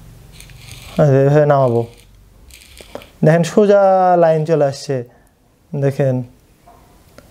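A man speaks calmly and clearly in short phrases, close by.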